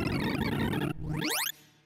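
A quick electronic tone sweeps upward in pitch.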